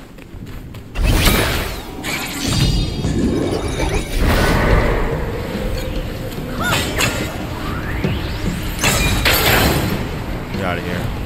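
Heavy blows crash and clang as a fighter strikes a large foe.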